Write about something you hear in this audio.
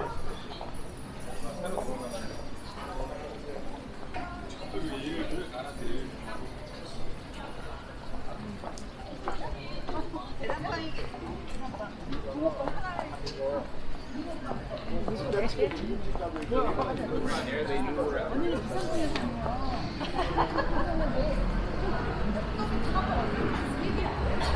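A busy street murmurs with distant traffic and voices outdoors.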